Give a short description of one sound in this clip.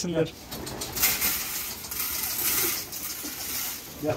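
Grain patters onto a wire floor as it is scattered.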